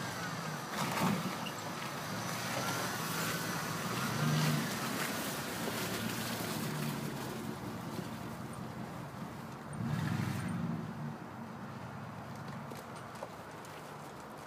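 Tyres churn through slushy mud and snow.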